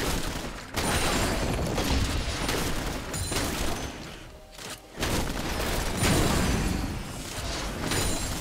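Game spells and attacks crackle and boom in quick bursts.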